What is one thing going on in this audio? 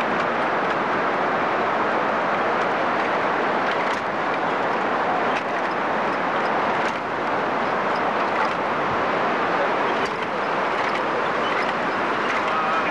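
Waves wash steadily onto the shore in the distance.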